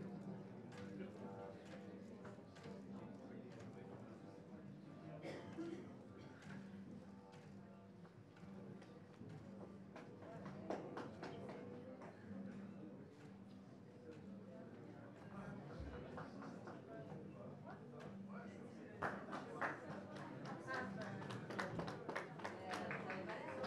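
A double bass is plucked in a low, steady pulse.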